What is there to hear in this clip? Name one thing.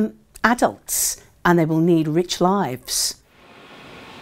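A middle-aged woman speaks calmly and warmly into a close microphone.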